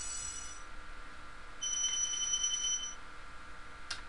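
Bright chiming tones ring out as treasure is collected in a video game.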